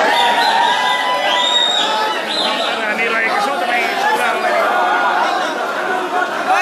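A dense crowd of men and women shouts and chants loudly close by.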